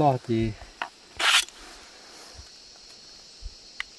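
A metal blade scrapes against a sheath.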